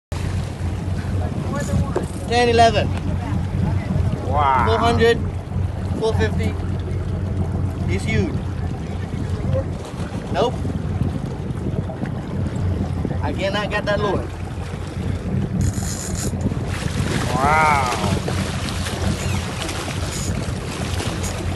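Water splashes and churns as a large fish thrashes at the surface.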